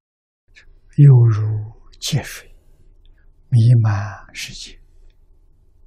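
An elderly man speaks slowly and calmly into a close microphone.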